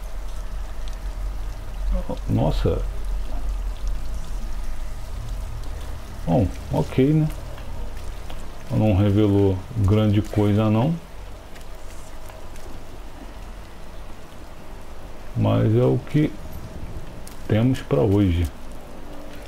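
Heavy rain falls.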